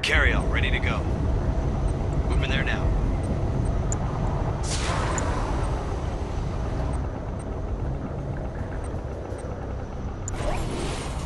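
A low, steady rumble of machinery hums throughout.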